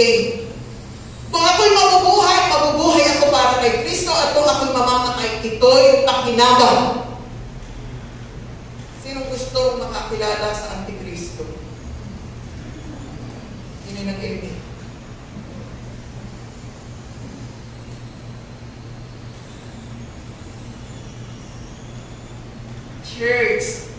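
A woman speaks with animation into a microphone, heard through loudspeakers in an echoing hall.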